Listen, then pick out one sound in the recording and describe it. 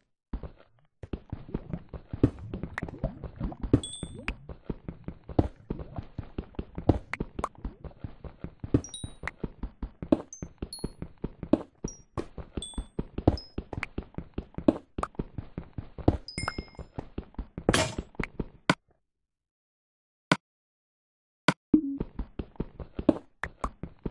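A pickaxe chips rapidly at stone with quick, repeated knocks.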